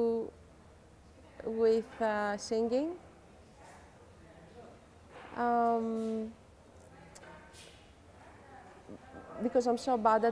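A woman speaks calmly and thoughtfully close to a microphone, with pauses.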